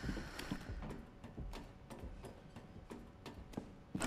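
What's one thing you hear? Hands and feet clank on a metal ladder.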